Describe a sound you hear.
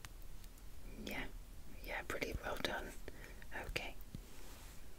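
A young woman whispers close to a microphone.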